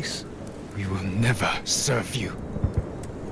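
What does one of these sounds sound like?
A younger man answers in a strained, defiant voice.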